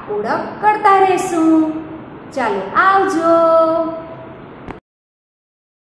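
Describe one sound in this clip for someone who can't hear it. A woman speaks close to a microphone with animation.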